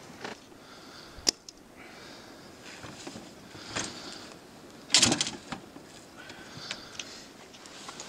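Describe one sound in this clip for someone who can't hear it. Gear knocks and clatters inside a small boat.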